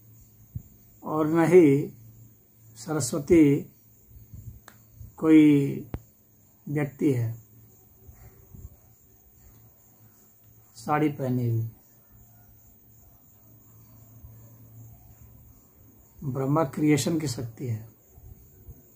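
A middle-aged man speaks calmly close to a microphone, in short phrases with pauses.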